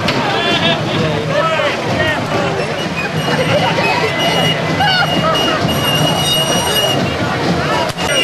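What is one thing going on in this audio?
Performers bang on drums and metal.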